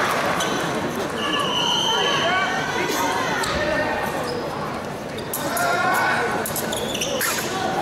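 Fencers' feet shuffle and stamp on a metal strip.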